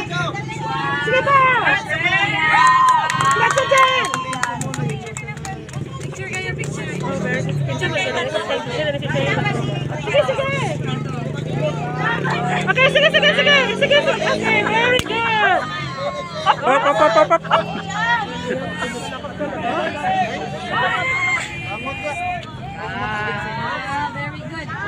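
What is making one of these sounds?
A large crowd cheers and shouts from stands outdoors.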